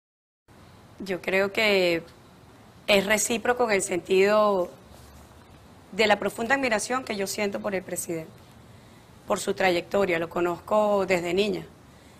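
A middle-aged woman speaks calmly into a microphone, in short phrases with pauses.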